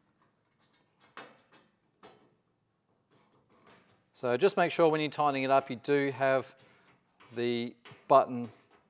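A ratchet clicks as a bolt is tightened.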